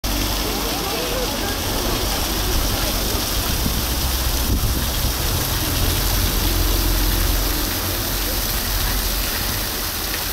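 A crowd of men, women and children chatter nearby outdoors.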